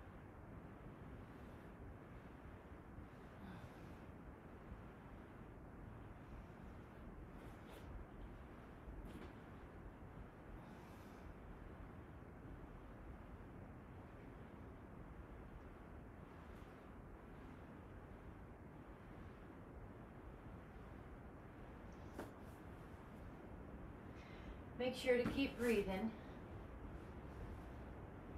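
A foam roller rolls softly under a body on a mat.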